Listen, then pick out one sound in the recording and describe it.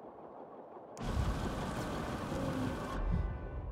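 A fire crackles and roars close by.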